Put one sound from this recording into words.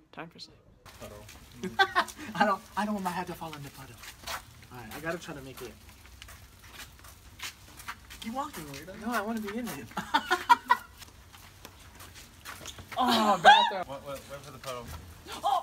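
Young men talk and laugh with animation outdoors.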